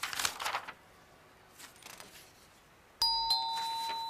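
Paper rustles as a man handles papers.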